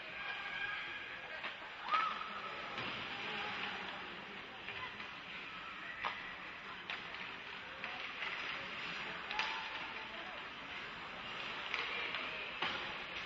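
Skates scrape and carve across the ice.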